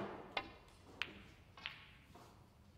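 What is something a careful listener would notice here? Snooker balls knock together.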